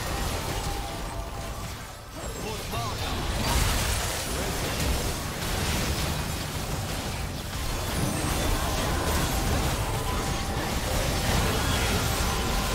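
Game spell effects crackle and whoosh during a fast battle.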